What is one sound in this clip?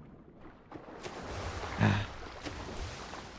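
Water splashes as a swimmer strokes along.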